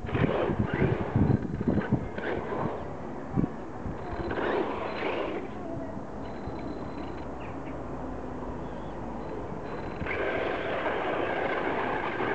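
A small electric motor whines as a toy car races over sand.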